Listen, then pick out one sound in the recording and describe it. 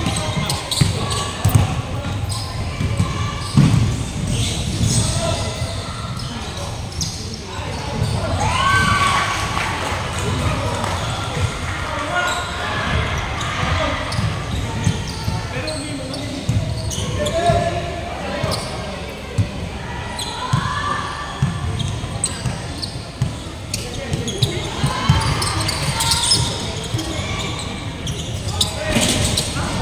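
Young men shout and call out to each other across the court.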